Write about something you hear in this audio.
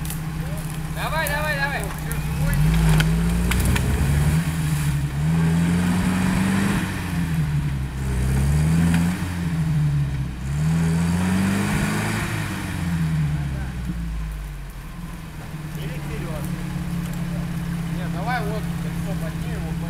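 A man calls out briefly at a distance, outdoors.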